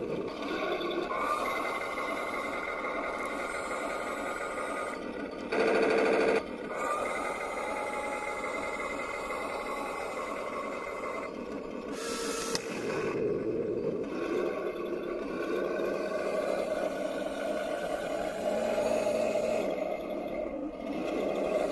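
A toy tank's electric motor whines steadily as its tracks turn.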